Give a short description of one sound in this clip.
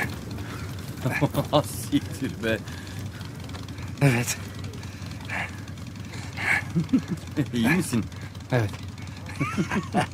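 A motorcycle engine idles and rumbles.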